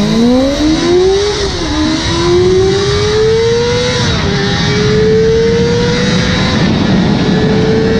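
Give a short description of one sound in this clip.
A high-revving inline-four sport bike engine accelerates through the gears.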